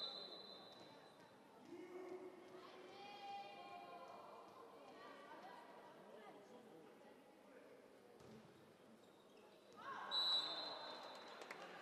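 A whistle blows sharply in a large echoing hall.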